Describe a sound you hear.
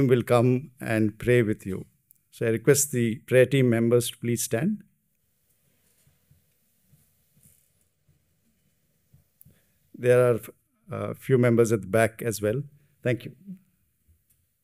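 A middle-aged man speaks calmly into a microphone, with pauses, heard through loudspeakers in a large room.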